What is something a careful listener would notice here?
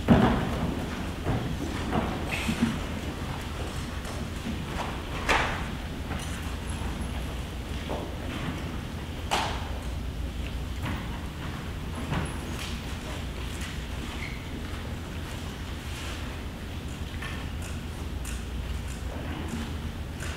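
An audience murmurs quietly in a large echoing hall.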